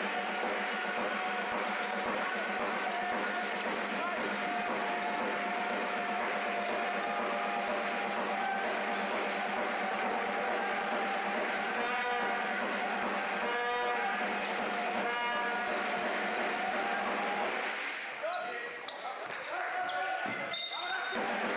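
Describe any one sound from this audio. A crowd cheers and chatters loudly in a large echoing hall.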